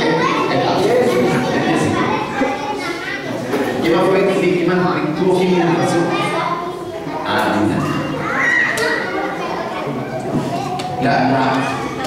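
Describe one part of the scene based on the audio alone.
A middle-aged man speaks with animation through a microphone in an echoing room.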